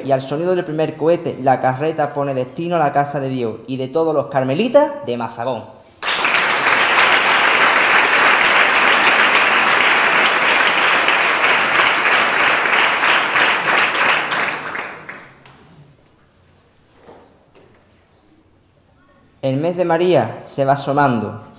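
A young man reads aloud calmly into a microphone in an echoing room.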